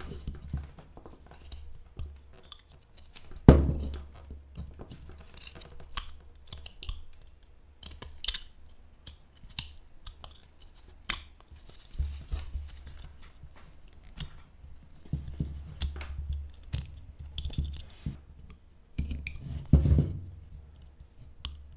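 A knife scrapes and shaves dry wood in short strokes.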